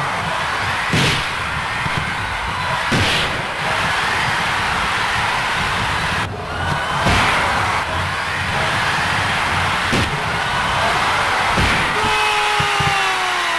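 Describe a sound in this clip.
A stadium crowd roars steadily.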